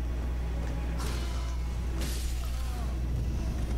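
A sword whooshes through the air in swift swings.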